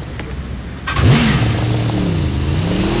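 A motorcycle engine starts with a roar.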